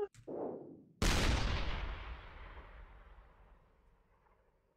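A game explosion booms and slowly fades.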